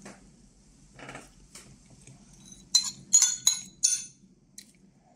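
A spoon scrapes inside a bowl.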